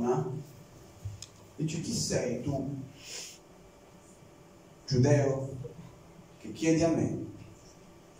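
A young man speaks calmly into a microphone, heard through loudspeakers in an echoing room.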